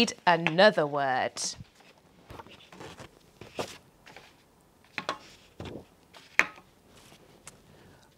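Paper cards rustle and slide.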